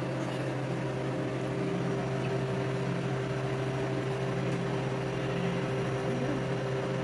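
A machine hums steadily with a low motor drone.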